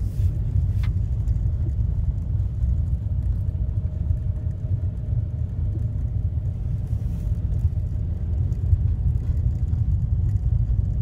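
A vehicle rolls along a gravel track with a low, steady rumble.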